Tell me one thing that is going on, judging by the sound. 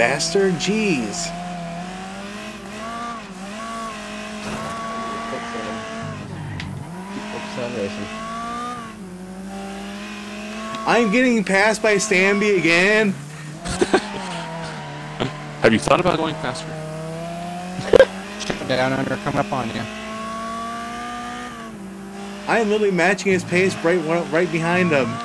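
A race car engine drones and revs steadily.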